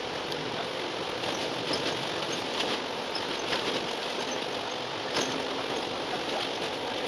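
Tyres roll on the road surface with a steady rumble.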